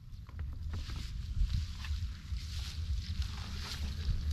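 Bare feet rustle through dry grass.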